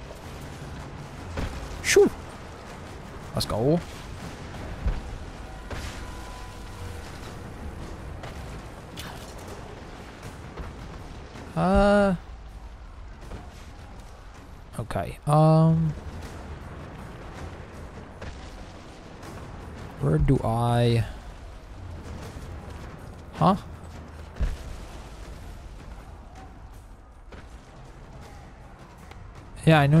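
Footsteps crunch on loose rubble.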